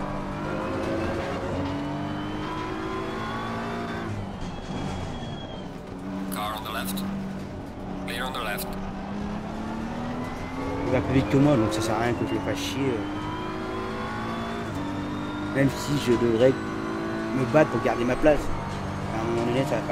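A racing car engine roars and whines through the gears.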